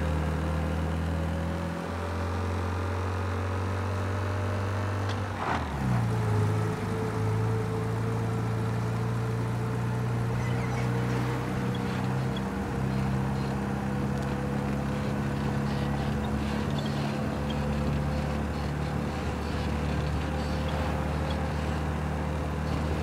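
An old car engine hums steadily as the car drives along a road.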